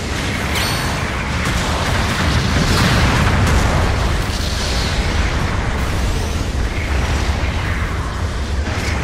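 Explosions and heavy gunfire boom and rumble in a loud battle.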